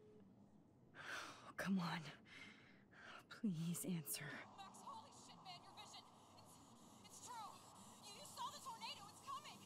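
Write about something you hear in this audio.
A young woman speaks softly and tearfully on a phone.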